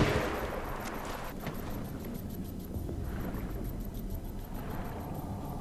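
Muffled underwater water sounds rumble and bubble steadily.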